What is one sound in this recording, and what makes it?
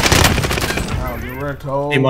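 Rapid gunshots crack sharply.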